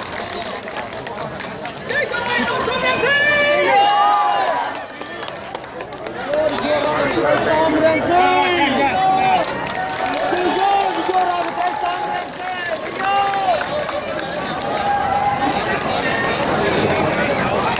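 A crowd of people shouts and cheers close by.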